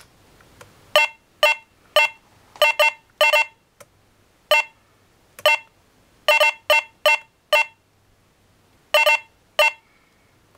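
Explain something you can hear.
A handheld game console gives short electronic beeps.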